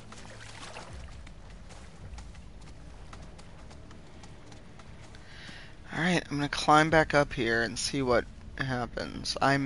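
Large birds' feet patter over the ground.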